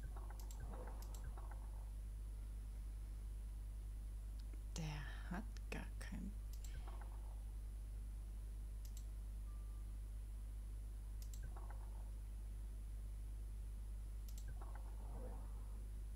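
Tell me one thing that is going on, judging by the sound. Game tiles click softly as they turn.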